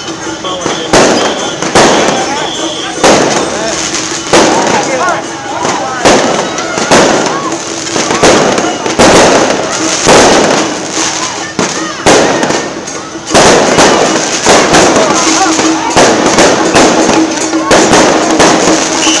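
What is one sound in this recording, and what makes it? Firecrackers bang and crackle loudly nearby.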